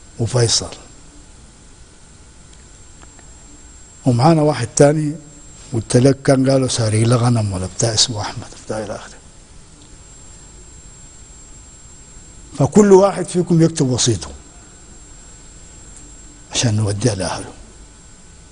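An elderly man speaks calmly into a close microphone, in bursts with long pauses.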